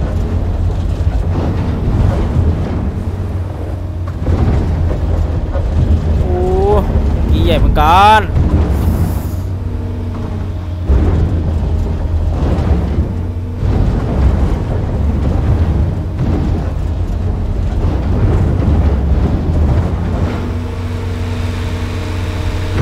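A diesel excavator engine rumbles steadily.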